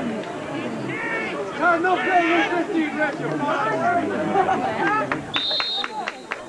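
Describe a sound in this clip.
A crowd of men and women talk and shout all around, close by.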